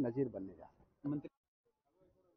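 A middle-aged man speaks into microphones outdoors.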